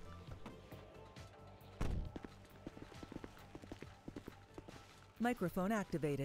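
Footsteps crunch through grass.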